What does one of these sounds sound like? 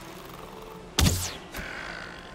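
An axe strikes wood with a sharp thud.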